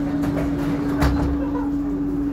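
Sliding train doors shut with a thud.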